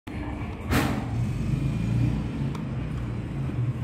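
An elevator call button clicks when pressed.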